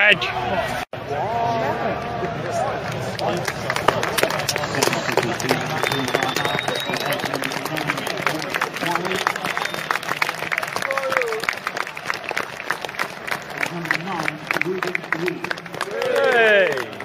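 Spectators nearby clap their hands rapidly.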